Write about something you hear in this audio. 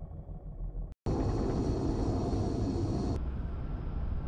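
A jet engine roars as an aircraft flies past.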